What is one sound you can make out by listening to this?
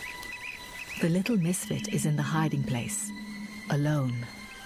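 A lion cub mews softly.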